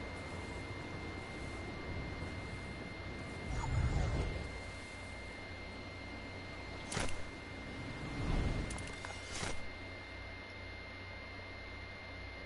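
Wind rushes steadily during a glide through the air.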